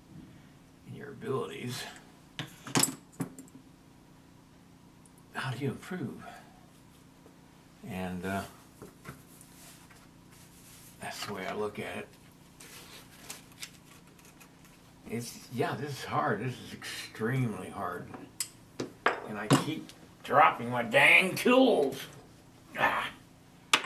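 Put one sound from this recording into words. A man talks calmly close by, in short bursts.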